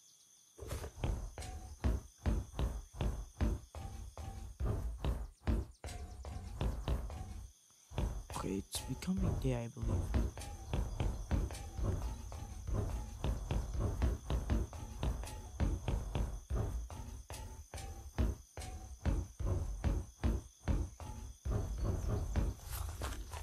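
Quick footsteps thud steadily on a hard surface.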